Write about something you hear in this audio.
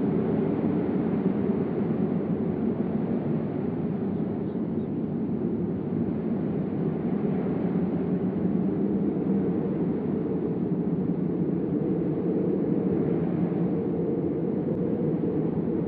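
An avalanche rumbles deeply as snow pours down a mountainside.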